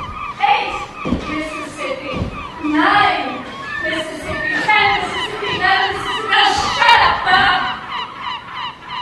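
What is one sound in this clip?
A dancer's bare feet thump and slide on a stage floor.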